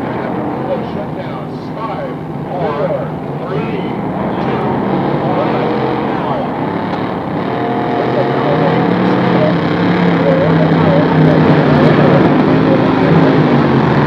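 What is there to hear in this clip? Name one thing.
Racing powerboat engines roar and whine across the water, growing louder.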